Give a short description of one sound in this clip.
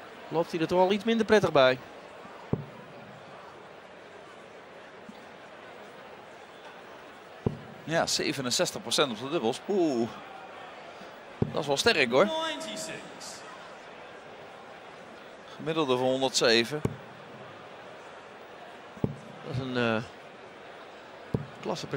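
A dart thuds into a board.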